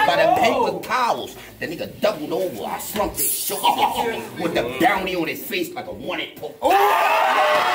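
A crowd of men shouts and reacts in the background.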